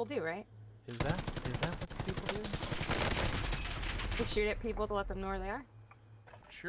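Gunfire rattles from a video game.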